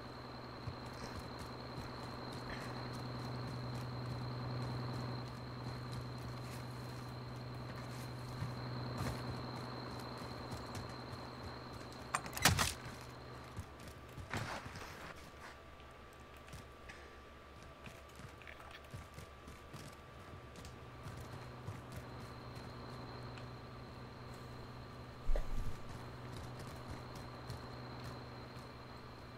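Footsteps thud quickly on hard ground and stairs.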